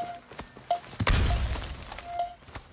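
A magical burst crackles and whooshes.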